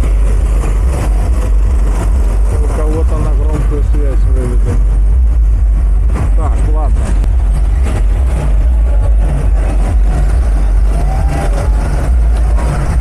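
Go-kart engines hum and buzz around a track.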